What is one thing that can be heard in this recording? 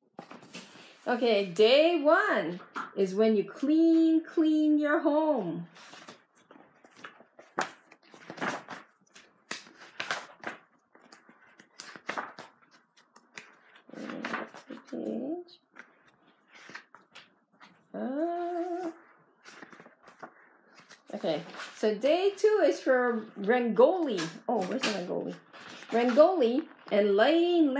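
An adult reads aloud expressively, close by.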